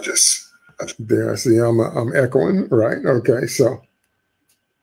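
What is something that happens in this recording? A middle-aged man speaks calmly and warmly into a microphone, heard as if over an online call.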